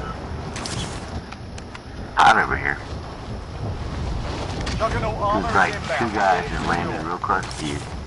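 Wind rushes steadily past during a parachute descent.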